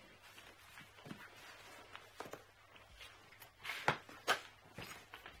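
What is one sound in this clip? A suitcase handle rattles and clicks as it is pushed down.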